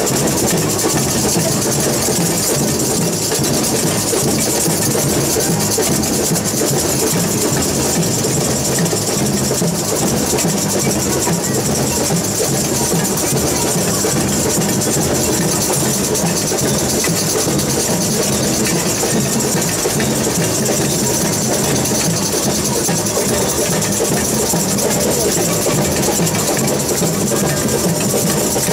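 Samba drums pound a fast, steady beat outdoors.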